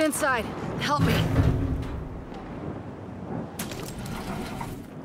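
A heavy metal door grinds and rumbles open.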